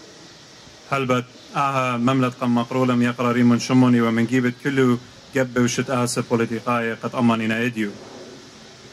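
A young man speaks loudly through a microphone and loudspeakers, in long drawn-out phrases.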